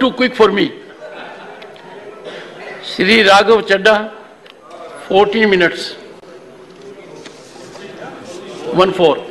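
An elderly man speaks firmly into a microphone in a large hall, in short bursts with pauses.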